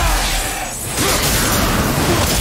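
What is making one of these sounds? A burst of fiery magic explodes with a roar.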